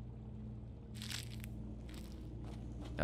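A soft game menu sound swishes.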